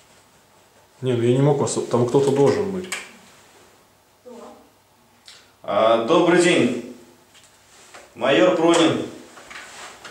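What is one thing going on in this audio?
A man speaks loudly and firmly nearby, in short bursts.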